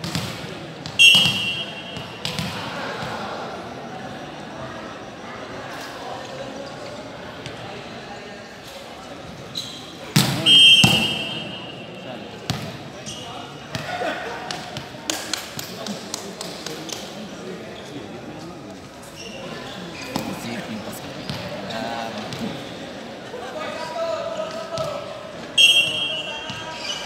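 A referee's whistle blows short, sharp blasts in a large echoing hall.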